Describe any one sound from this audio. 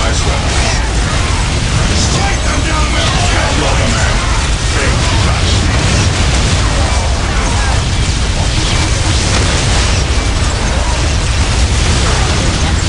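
Rapid gunfire crackles in a battle.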